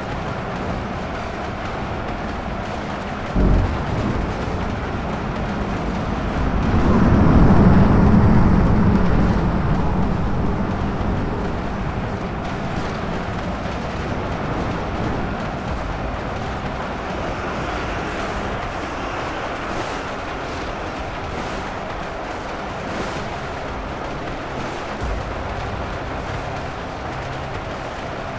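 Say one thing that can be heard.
A huge battle clashes with a loud, steady roar that swells and then eases.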